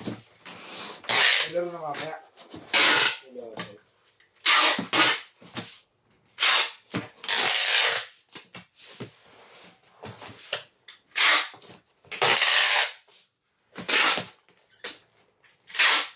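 Cardboard sheets thud softly as they are pressed and stacked.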